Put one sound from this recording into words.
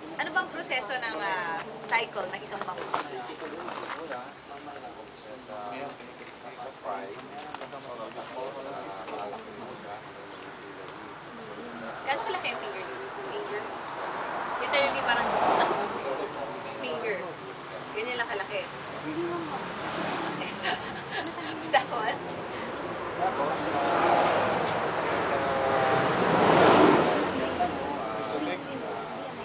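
A young woman speaks calmly nearby, outdoors.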